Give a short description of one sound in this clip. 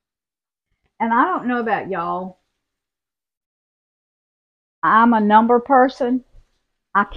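An elderly woman speaks calmly, close to a microphone.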